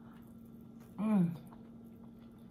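A woman hums with pleasure while eating.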